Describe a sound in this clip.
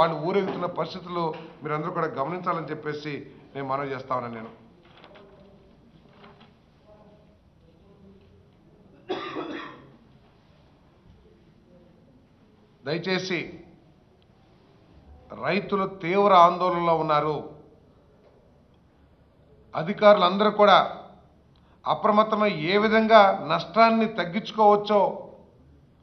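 A middle-aged man speaks forcefully into a microphone, with pauses between bursts of speech.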